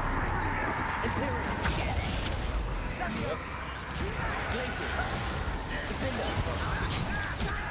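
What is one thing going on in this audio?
Magic spells crackle and blast in a fight.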